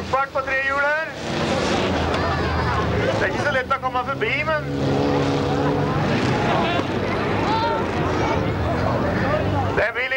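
Car engines roar as small cars race on a dirt track.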